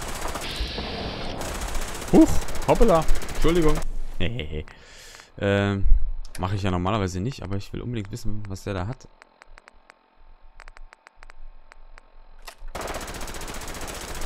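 A laser rifle fires with sharp, zapping shots.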